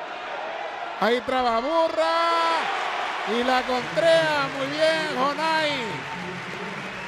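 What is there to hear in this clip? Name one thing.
A man shouts loudly from the crowd.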